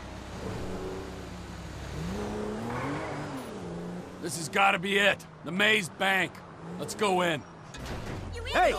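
A car engine hums steadily as the car drives and turns.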